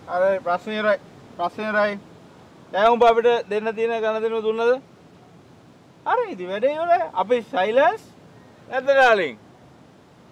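A man speaks in a low, tense voice close by.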